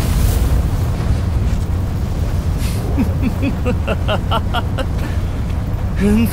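Flames roar with a deep, steady rumble.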